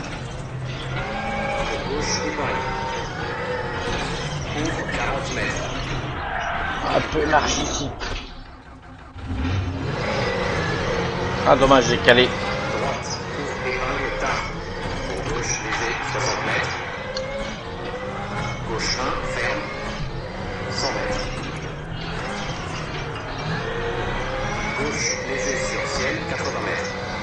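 A rally car engine roars and revs up and down through gear changes.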